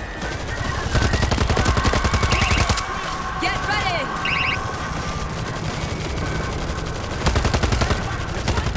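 Rapid automatic gunfire rattles in quick bursts.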